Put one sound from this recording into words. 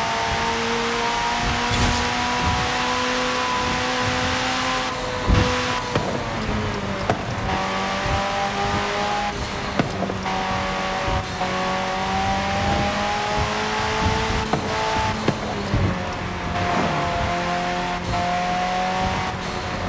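Tyres rumble over the road at speed.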